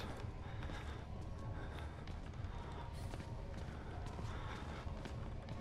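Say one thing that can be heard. Footsteps creak slowly across a wooden floor.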